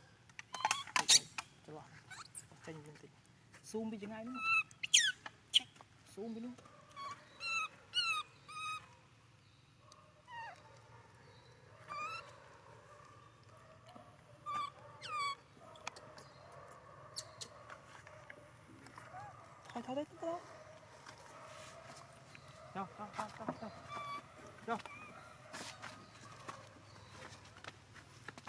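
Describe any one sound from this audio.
A baby monkey squeaks and squeals in short high cries.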